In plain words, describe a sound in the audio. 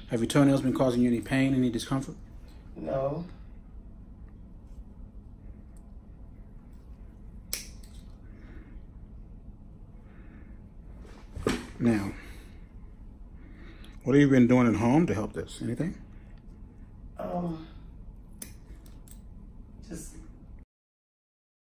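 Nail clippers snip toenails with small clicks.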